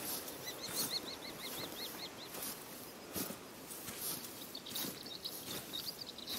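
Leaves and branches rustle as someone pushes through dense bushes.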